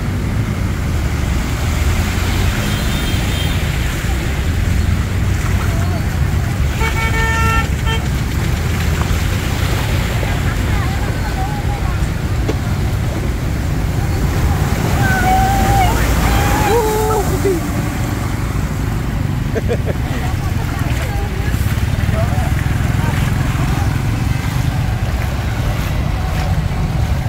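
Motorbike engines idle and rumble close by.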